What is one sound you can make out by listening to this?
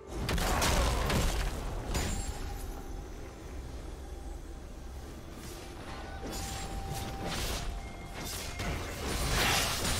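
Magic spells whoosh and crackle in bursts during a fight in a video game.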